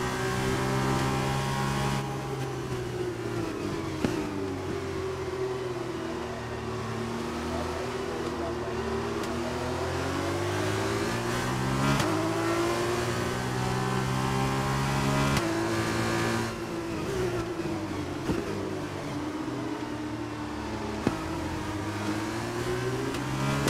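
A racing car engine revs up and down, rising and falling in pitch through gear changes.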